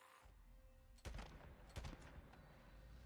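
Rifle shots ring out loudly, echoing in a cave.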